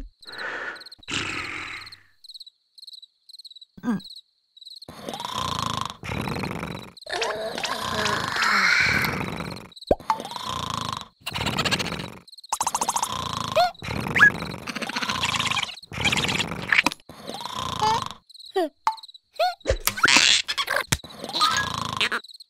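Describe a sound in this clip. A cartoon creature babbles and whines in a squeaky, exaggerated voice.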